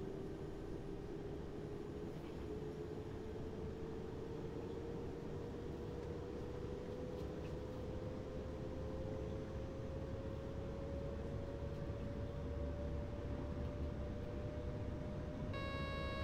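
An electric train motor whines, rising slowly in pitch as it speeds up.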